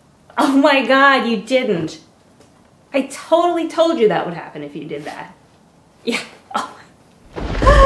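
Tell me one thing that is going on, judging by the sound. A young woman talks with animation close by, as if on a phone.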